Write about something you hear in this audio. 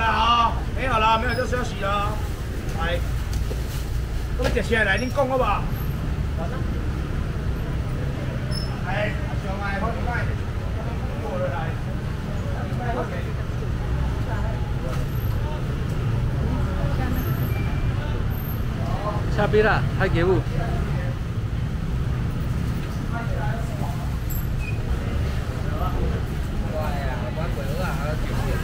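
A low, steady rumble and chatter of a crowded market fills the air.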